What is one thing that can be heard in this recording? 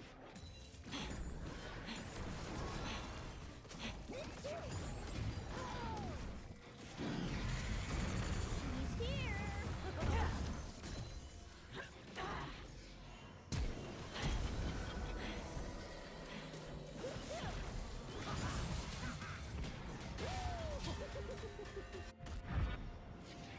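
Game spell effects and weapon hits crackle and clash in quick succession.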